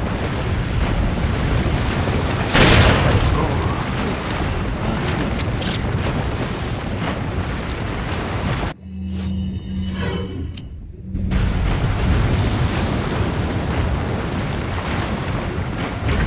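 Flames roar steadily.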